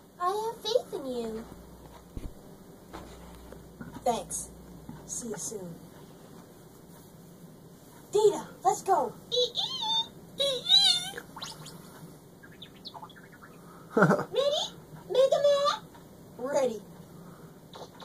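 Video game sound effects and chirpy character noises play from a television speaker.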